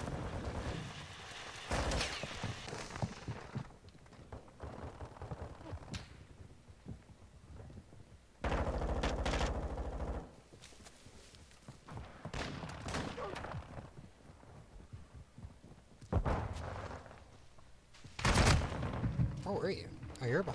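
A rifle fires rapid bursts at close range.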